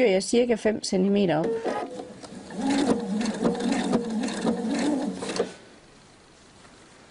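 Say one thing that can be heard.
A sewing machine hums and stitches.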